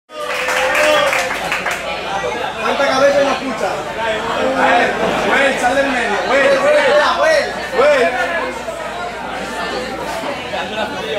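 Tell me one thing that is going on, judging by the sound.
A crowd of young men and women chatter and laugh nearby in a busy room.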